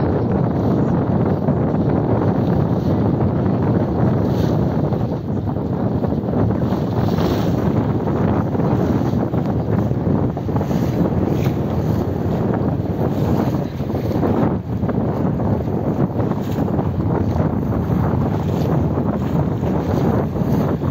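Choppy water splashes and laps nearby.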